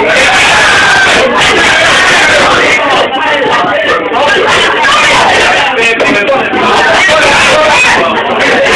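A crowd of young men and women talk and shout loudly close by.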